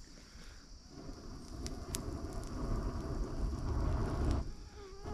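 A fire flares up with a rushing roar.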